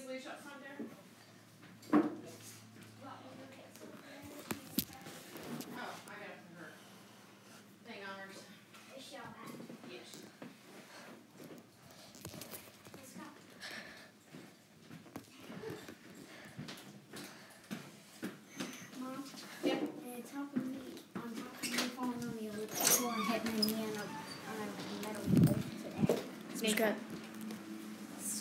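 A boy talks playfully close by.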